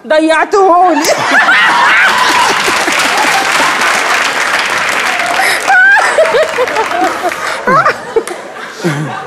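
A woman laughs heartily.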